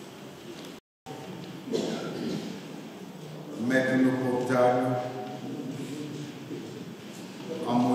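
A man speaks calmly into a microphone in a reverberant hall.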